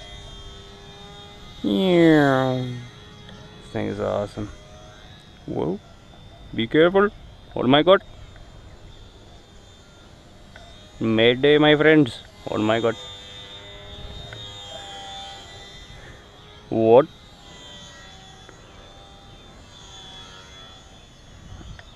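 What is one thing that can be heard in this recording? A small propeller plane's motor whines overhead.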